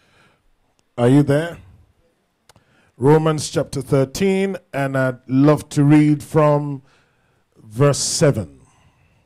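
A man speaks with animation through a microphone in an echoing hall.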